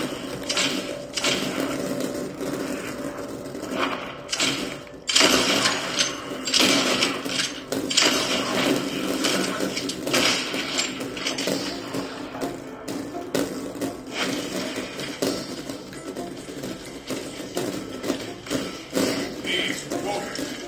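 A horse gallops from a television in a room.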